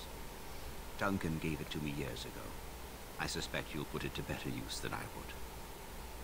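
A man speaks calmly through a speaker.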